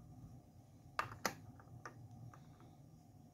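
A coin clicks against a plastic holder.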